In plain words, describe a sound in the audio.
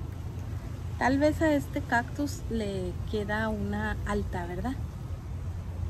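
A woman speaks briefly and calmly close by.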